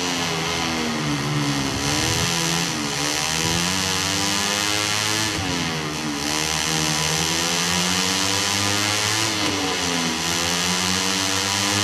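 A racing motorcycle engine revs high, its pitch rising and falling through the gears.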